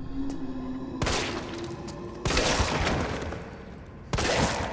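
A handgun fires single shots that echo in a large room.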